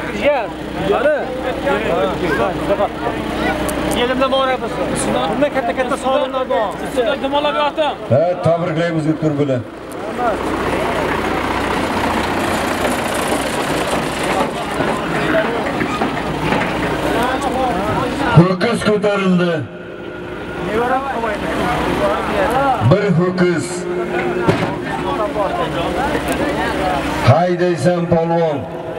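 A large crowd shouts far off outdoors.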